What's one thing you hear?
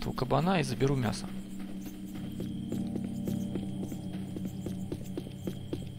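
Footsteps fall steadily on a road.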